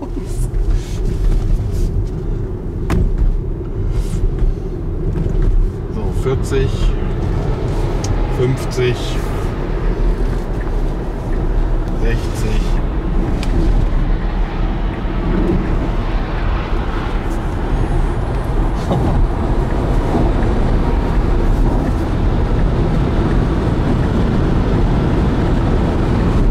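Tyres roll steadily over the road, heard from inside a car.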